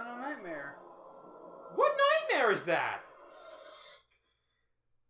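A young man makes loud, dramatic vocal sounds close to a microphone.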